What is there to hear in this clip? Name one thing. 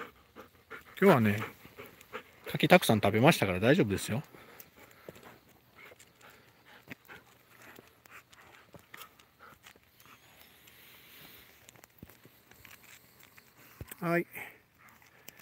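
A dog growls playfully up close.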